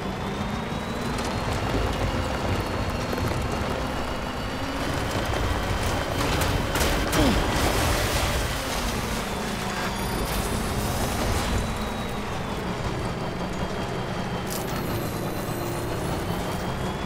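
An off-road truck engine rumbles steadily.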